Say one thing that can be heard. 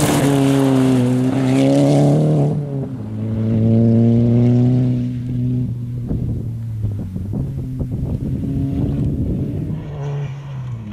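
A rally car engine revs hard and changes pitch as the car speeds across rough ground.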